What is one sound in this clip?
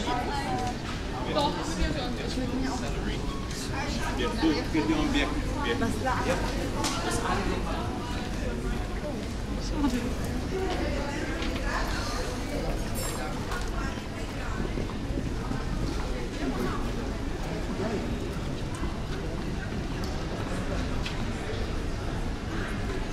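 Footsteps shuffle on stone paving.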